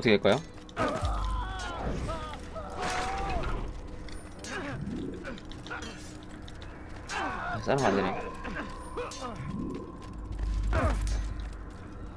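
Swords clash and clang.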